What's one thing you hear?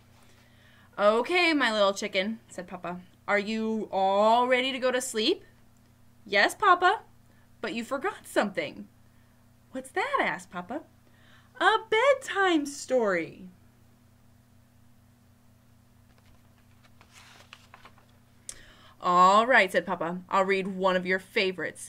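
A young woman reads aloud with animation, close to a microphone.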